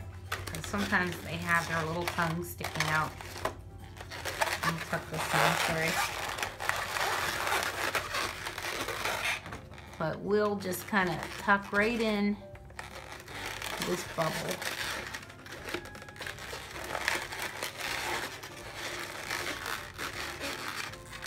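Rubber balloons squeak and rub as hands twist them.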